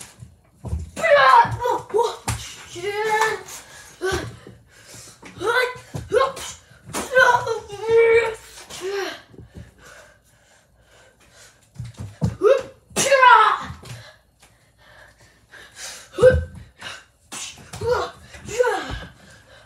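Footsteps thump on the floor as a child runs about.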